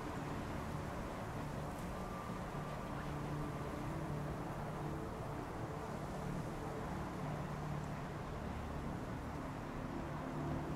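Strong wind howls steadily through a snowstorm.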